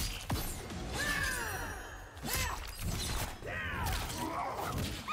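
A woman screams in pain.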